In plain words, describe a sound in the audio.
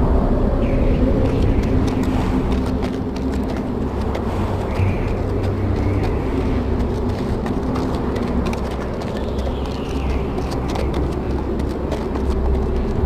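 Horse hooves clop slowly on packed snow.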